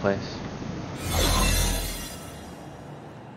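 A heavy metal door slides open with a deep whoosh.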